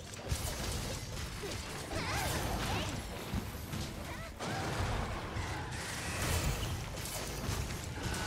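Weapon strikes land with sharp hits.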